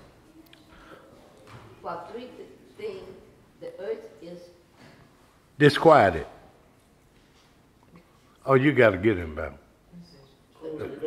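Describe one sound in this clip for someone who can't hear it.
An elderly man speaks slowly and expressively into a microphone, with loud drawn-out outbursts.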